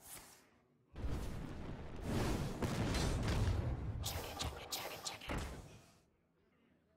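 A fireball roars and bursts with a blast.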